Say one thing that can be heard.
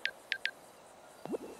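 A phone gives short electronic beeps.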